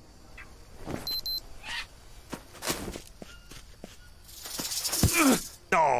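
Footsteps rustle through leaves and undergrowth.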